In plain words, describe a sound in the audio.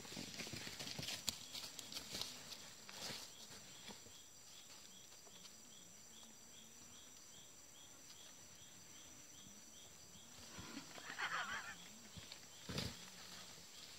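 A cloth sack rustles and crinkles as it is dragged and tugged.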